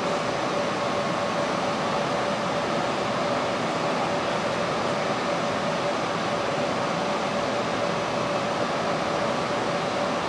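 A metro train pulls into an underground station.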